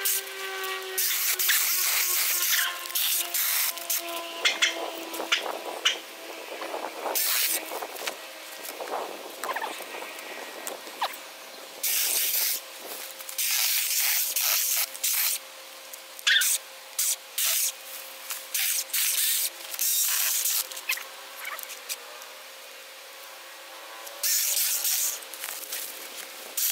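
A small electric saw whirs and cuts through branches in short bursts.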